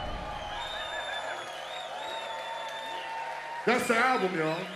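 A crowd cheers and whistles in a large hall.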